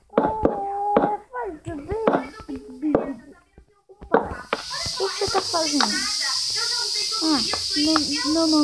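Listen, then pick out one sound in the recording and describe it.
Wooden blocks are placed with soft knocks.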